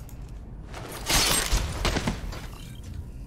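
A heavy blow lands with a loud whooshing rush.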